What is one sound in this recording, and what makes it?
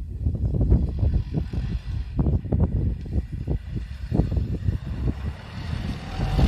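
A snowmobile engine drones in the distance and grows louder as it approaches.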